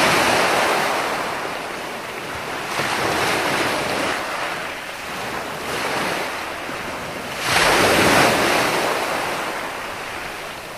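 Foaming surf hisses as it spreads over the sand.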